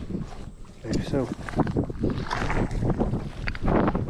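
A cast net splashes into water.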